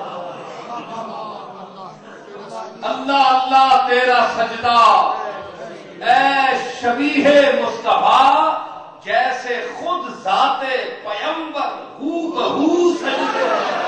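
A man speaks forcefully into a microphone, his voice ringing through a large hall.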